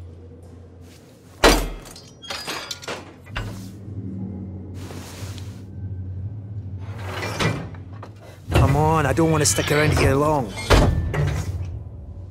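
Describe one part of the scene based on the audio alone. A wrench clanks against metal.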